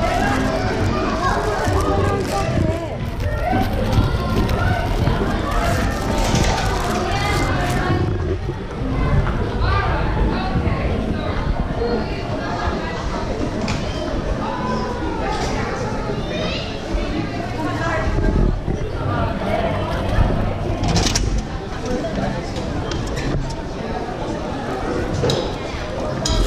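Men and women chatter nearby in a large echoing hall.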